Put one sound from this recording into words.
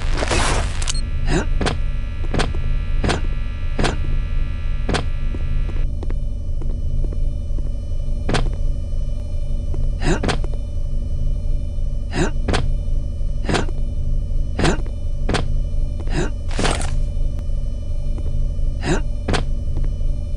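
Footsteps thud as a figure jumps and lands on metal blocks.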